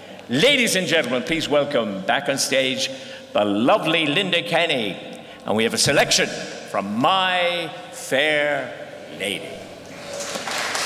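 An elderly man announces loudly through a microphone in a large echoing hall.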